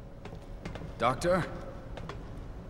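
A man calls out a short question.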